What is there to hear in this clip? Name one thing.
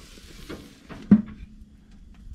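A metal grill lid shuts with a thud.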